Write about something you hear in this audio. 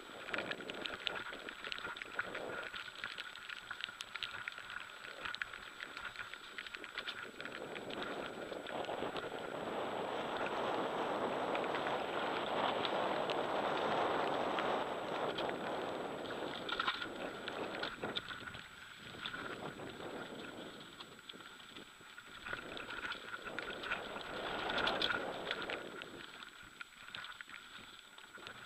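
Bicycle tyres roll and crunch over a gravel trail.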